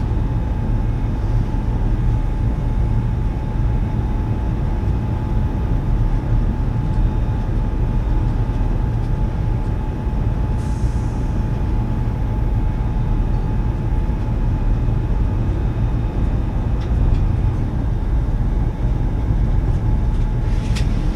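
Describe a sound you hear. A train rumbles steadily along the rails with a constant hum.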